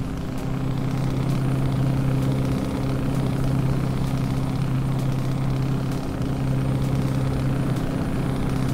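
A truck engine drones steadily while driving along a road.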